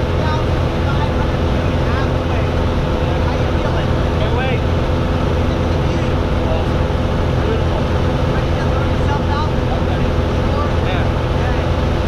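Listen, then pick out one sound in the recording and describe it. A young man speaks up close, shouting over the engine noise.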